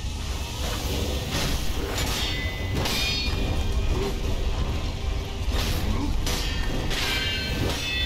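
Swords clash with sharp metallic rings.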